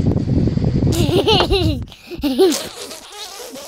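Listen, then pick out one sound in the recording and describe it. A young boy speaks with animation close by.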